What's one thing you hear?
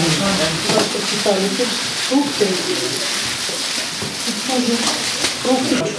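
A plastic bag rustles as hands handle it.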